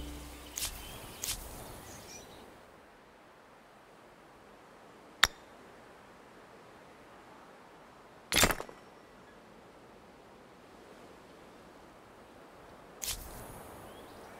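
Short game interface clicks and whooshes sound now and then.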